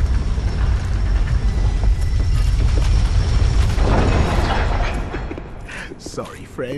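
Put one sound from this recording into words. Armoured footsteps thud on stone.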